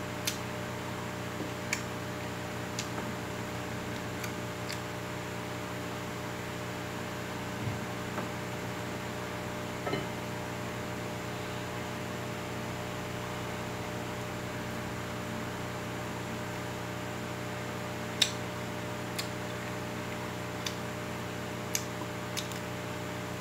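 Fingers click and scrape against a plate now and then.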